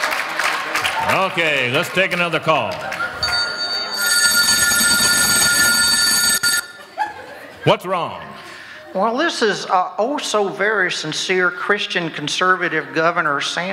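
An elderly man speaks with animation through a microphone in a large echoing hall.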